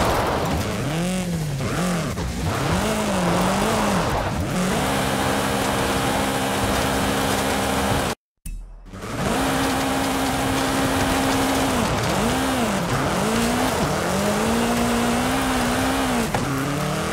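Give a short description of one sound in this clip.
A buggy's engine revs and roars, rising and falling in pitch.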